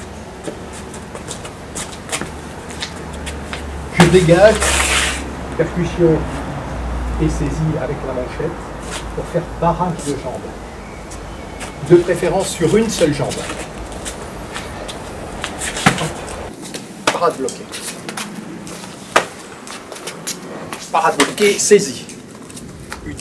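Punches and kicks land with dull thuds on padded gloves.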